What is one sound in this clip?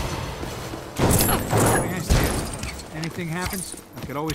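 A metal object crashes and clatters to the ground.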